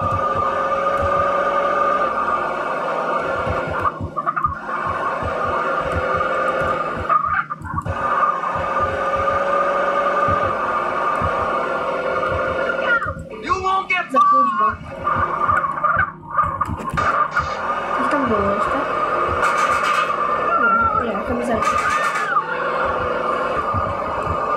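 A car engine roars steadily.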